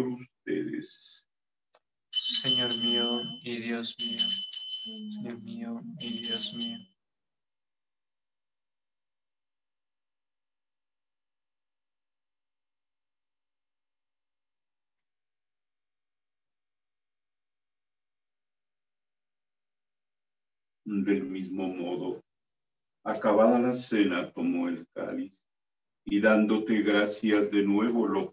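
A middle-aged man speaks and chants solemnly through a microphone on an online call.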